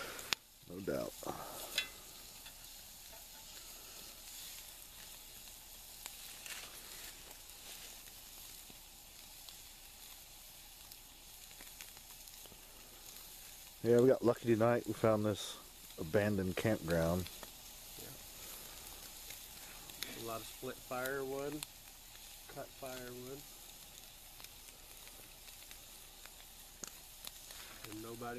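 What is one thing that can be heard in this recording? A wood fire crackles softly.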